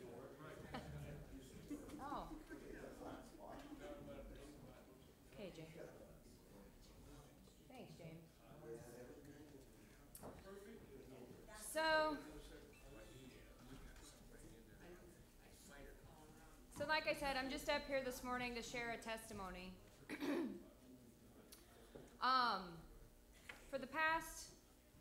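A young woman speaks calmly through a microphone in a large echoing hall.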